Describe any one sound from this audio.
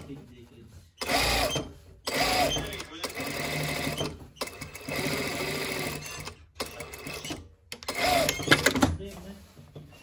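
A sewing machine runs in short bursts, whirring and clattering.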